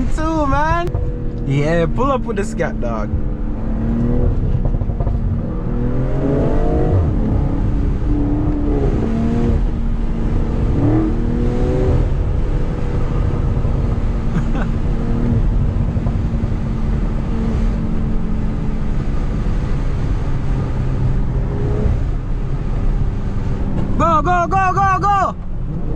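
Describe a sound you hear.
A car engine hums steadily and rises in pitch as the car speeds up.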